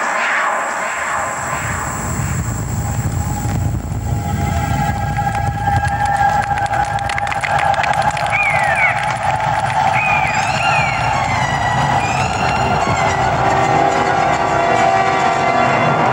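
A herd of animals stampedes with a deep, building rumble.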